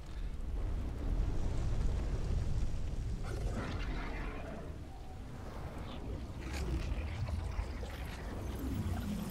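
A deep rumbling drone runs throughout.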